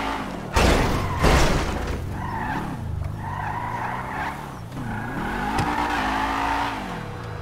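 Tyres roll over rough pavement.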